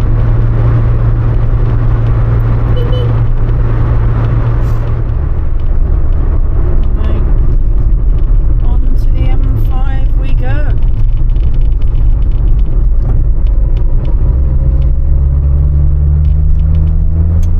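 Tyres roar on a road.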